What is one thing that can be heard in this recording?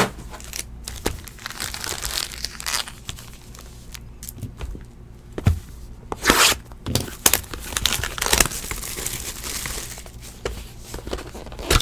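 Plastic card wrappers crinkle and rustle in hands.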